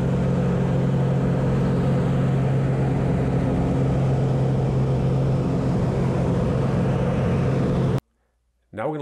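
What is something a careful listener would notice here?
A small propeller plane's engine roars steadily up close.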